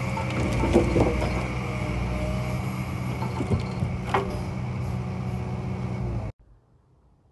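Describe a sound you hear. A diesel engine of a log loader hums steadily close by.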